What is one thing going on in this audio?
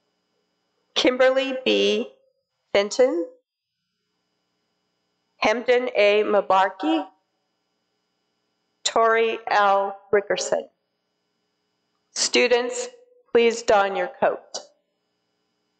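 A woman speaks calmly in short phrases, heard through an online call.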